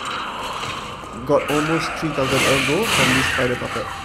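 A greatsword slashes into flesh with a wet, heavy hit.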